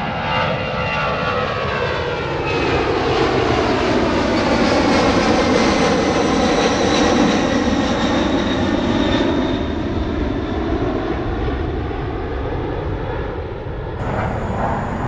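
Jet engines roar loudly overhead and rise and fall in pitch as the jets pass.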